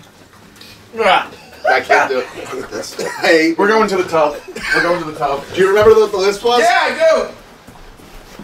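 Several men talk loudly and with animation close by.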